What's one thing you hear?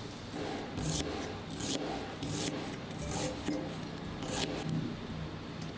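A knife chops quickly on a plastic cutting board.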